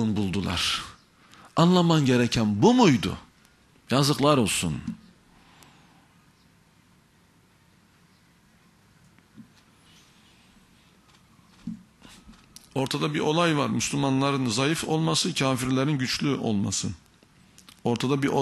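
A man speaks with animation into a microphone, with pauses.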